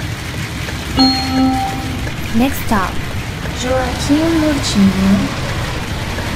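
A game chimes a few short electronic tones.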